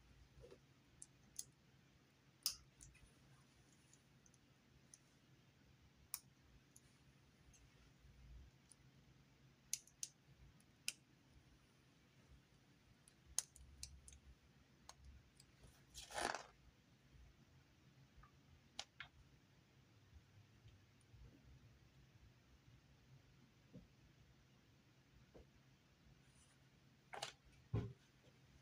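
Small plastic toy bricks click and snap together by hand.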